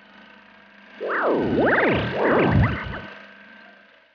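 Electric sparks crackle and zap.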